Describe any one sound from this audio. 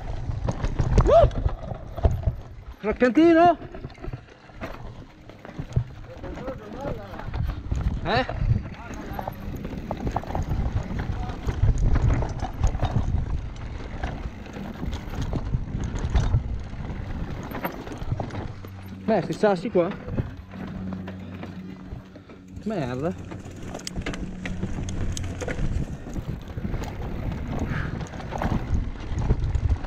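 A bike frame rattles and clatters over bumps.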